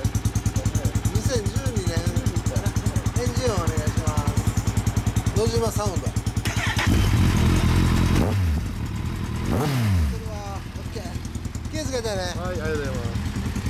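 A motorcycle engine idles with a fast, throbbing beat close by.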